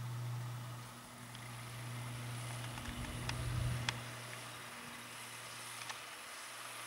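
A snowmobile engine hums steadily as it drives closer across the snow.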